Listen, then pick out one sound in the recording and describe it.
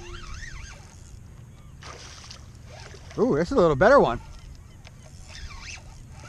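A fish splashes in the water nearby.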